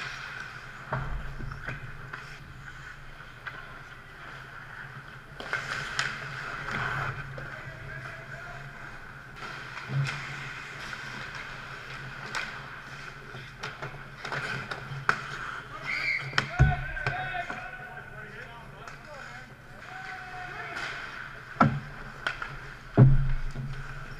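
Hockey sticks clack against a puck and each other on ice.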